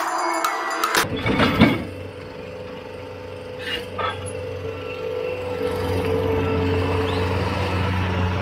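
Steel tracks clank and squeak as a loader drives over ground.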